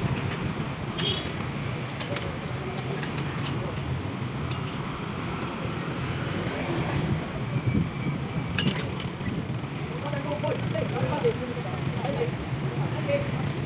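Metal scaffolding pipes clink and clank as workers handle them.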